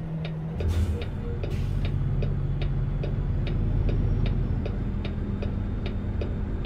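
A turn signal ticks in an even rhythm.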